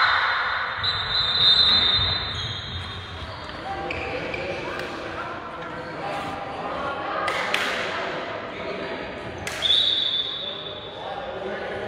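A referee blows a whistle in short sharp blasts.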